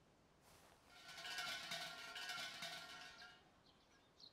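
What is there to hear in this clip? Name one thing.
A bell rings and chimes, fading away.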